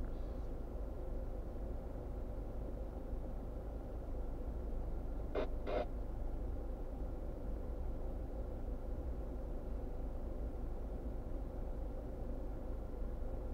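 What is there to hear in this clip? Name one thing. A car engine idles with a low steady rumble inside the car.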